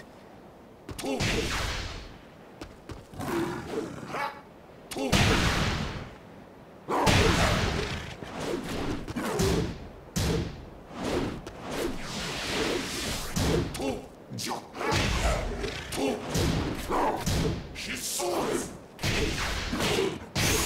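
Fighters' blows thud and clash in quick bursts.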